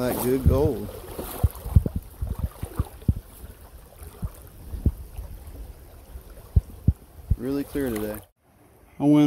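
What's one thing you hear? Shallow water trickles gently over stones.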